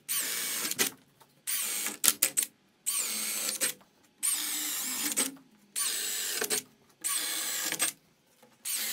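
A power drill whirs in repeated short bursts.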